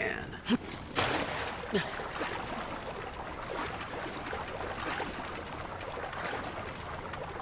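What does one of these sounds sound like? Water splashes and sloshes as someone swims.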